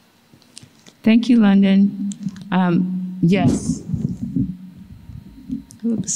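An older woman speaks into a microphone.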